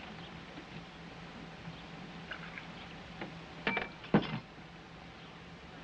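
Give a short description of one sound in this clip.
Water pours from a pitcher into a glass.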